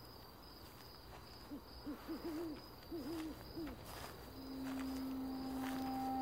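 Footsteps brush through grass.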